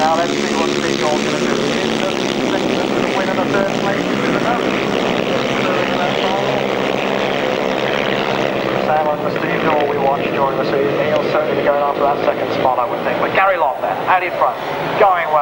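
Motorcycle engines roar loudly and rise and fall in pitch as they race past.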